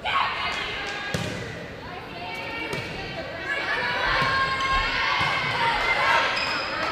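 A crowd cheers and chatters in a large echoing gym.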